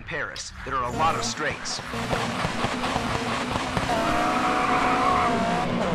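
Racing car engines roar and rev.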